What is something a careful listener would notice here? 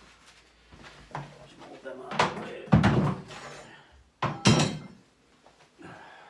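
A tool thuds and scrapes against the floor.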